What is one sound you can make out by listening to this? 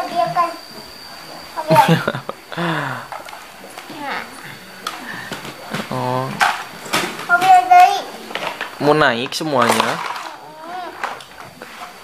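Plastic toys clatter as they are rummaged through.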